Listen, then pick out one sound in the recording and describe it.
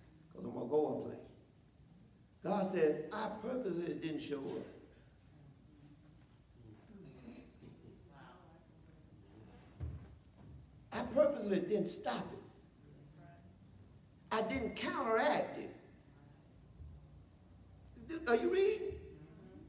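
A middle-aged man preaches with animation through a headset microphone in a large echoing hall.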